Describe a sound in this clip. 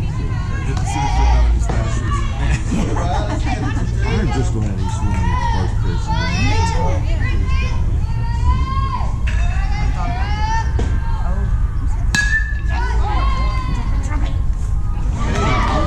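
Children shout and cheer excitedly nearby.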